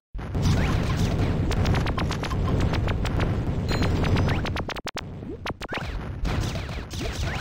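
Rapid weapon shots fire in a game.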